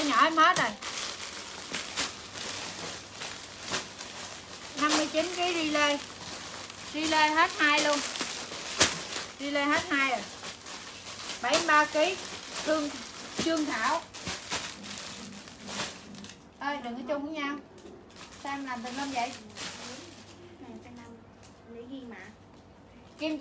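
Plastic-wrapped clothes rustle and crinkle as they are handled.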